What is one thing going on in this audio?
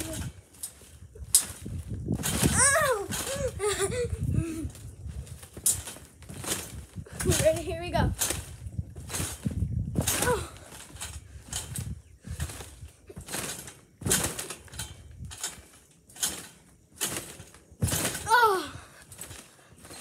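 A trampoline mat thumps and its springs creak as a boy bounces.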